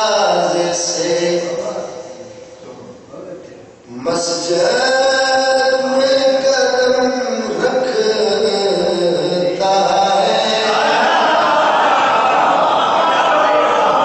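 A man sings a lament with strong emotion through a loudspeaker microphone, in a reverberant space.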